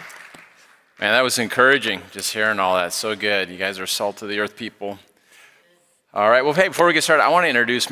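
A man speaks calmly through a microphone to an audience.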